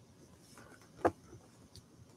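A plastic case knocks lightly as it is set down.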